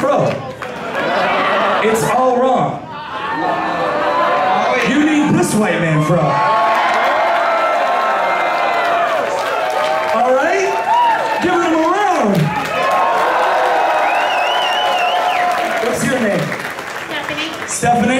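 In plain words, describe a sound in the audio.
A man raps loudly through a microphone over a loudspeaker.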